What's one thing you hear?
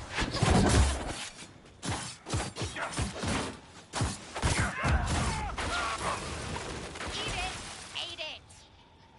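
Swords clash and magic bursts crackle in a fierce fight.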